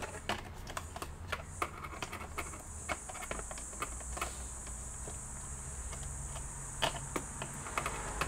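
Plastic parts click and tap as a gloved hand works inside a laptop.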